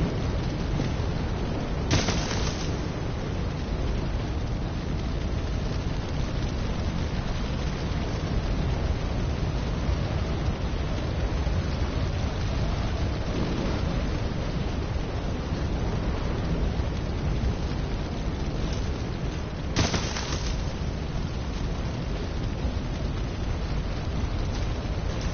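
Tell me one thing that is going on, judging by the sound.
Wind blows steadily and roars low outdoors.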